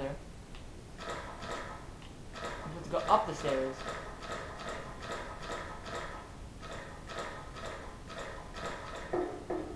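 Footsteps tread in a steady rhythm.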